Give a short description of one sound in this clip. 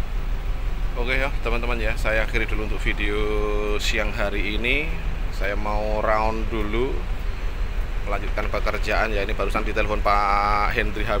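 A man talks.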